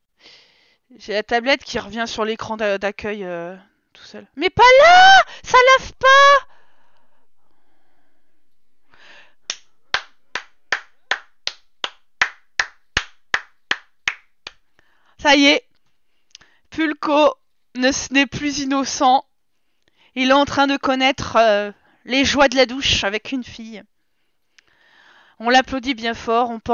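A young woman talks with animation close to a headset microphone.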